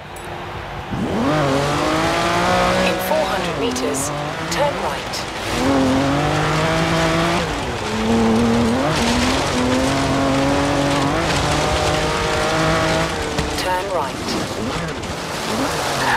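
A sports car engine revs hard and roars up through the gears as the car speeds up.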